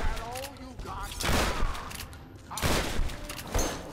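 Gunshots crack loudly from a game.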